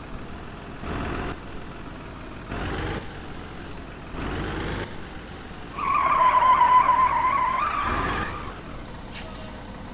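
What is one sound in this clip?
A truck engine rumbles as the truck drives closer.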